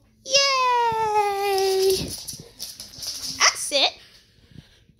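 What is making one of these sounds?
A squeaky rubber toy squeaks loudly several times.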